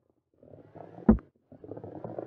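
A ball knocks against a hard edge.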